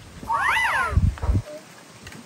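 A girl speaks in a high voice.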